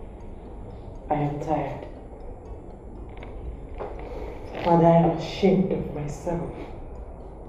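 A young woman speaks quietly and hesitantly, close by.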